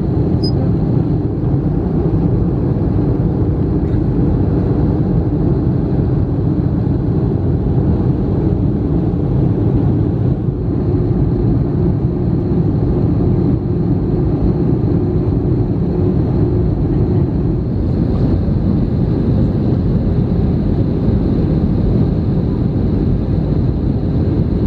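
Jet engines roar steadily inside an airliner cabin.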